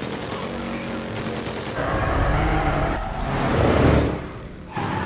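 A motorcycle engine revs.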